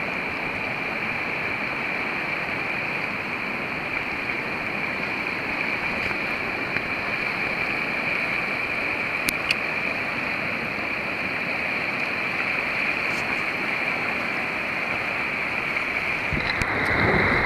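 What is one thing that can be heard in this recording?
A river flows and ripples steadily.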